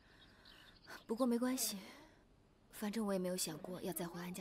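Another young woman answers quietly, close by.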